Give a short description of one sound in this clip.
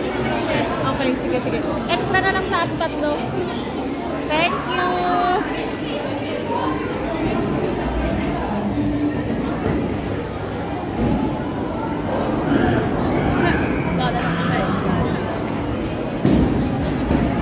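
Arcade machines chime and beep nearby.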